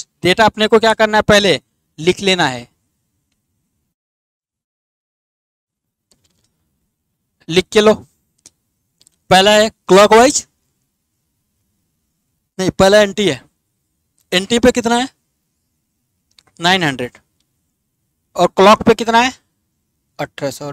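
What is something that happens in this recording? A man speaks in short bursts through a headset microphone, explaining calmly.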